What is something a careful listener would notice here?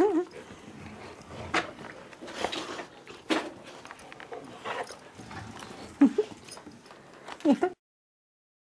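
Dogs growl and whine playfully up close.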